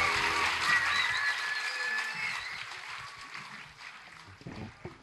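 A large crowd cheers and shouts in a big hall, then quiets down.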